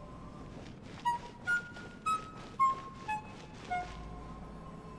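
Bright chiming notes ring out one after another in a rising and falling little tune.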